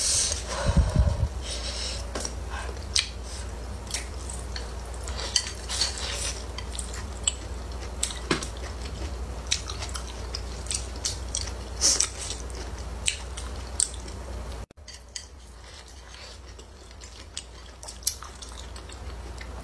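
A young woman chews crunchy food close to a microphone.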